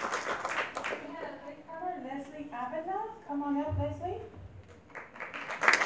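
A woman speaks calmly over a loudspeaker in a large hall.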